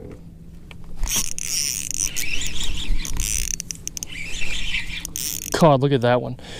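A fishing reel whirs as its handle is cranked fast.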